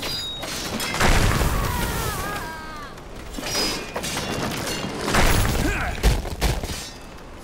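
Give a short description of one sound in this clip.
Fire spells burst with a loud whooshing roar.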